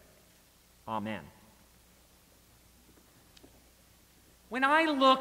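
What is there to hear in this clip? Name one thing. A middle-aged man speaks slowly and calmly into a microphone, pausing between phrases.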